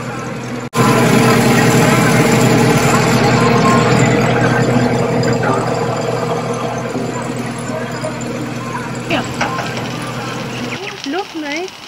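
A tractor engine idles with a steady low rumble.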